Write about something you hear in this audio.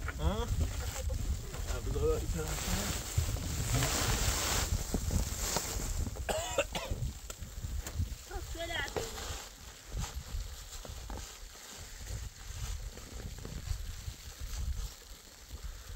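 A plastic tarp rustles and crackles as it is pulled.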